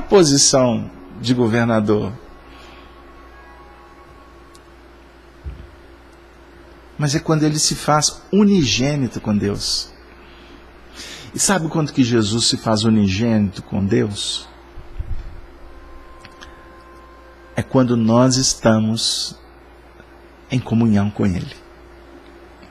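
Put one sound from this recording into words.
A middle-aged man talks animatedly and close into a microphone, with pauses.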